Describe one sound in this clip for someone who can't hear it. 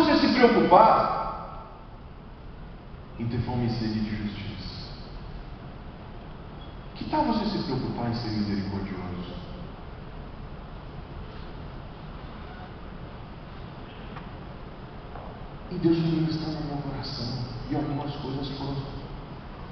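A man speaks with passion through a microphone and loudspeakers, in bursts with pauses, in a large echoing hall.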